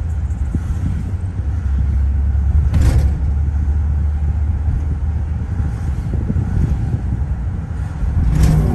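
Tyres roar steadily on a highway.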